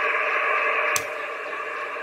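A radio knob clicks once.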